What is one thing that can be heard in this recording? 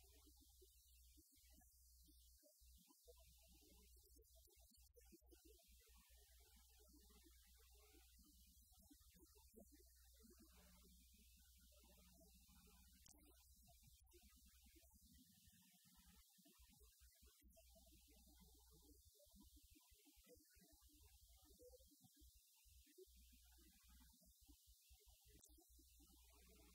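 A live band plays music in a large hall.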